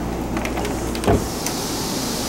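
A wooden door clicks as it swings open.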